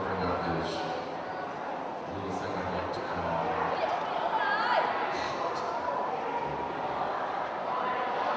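A young woman speaks into a microphone over loudspeakers, echoing outdoors.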